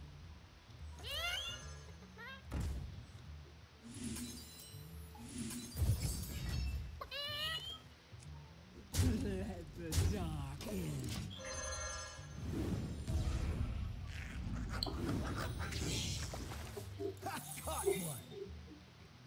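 Video game sound effects chime, whoosh and thud as cards are played.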